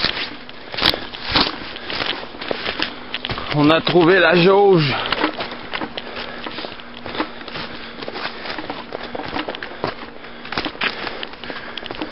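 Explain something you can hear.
Footsteps crunch and rustle through low brush.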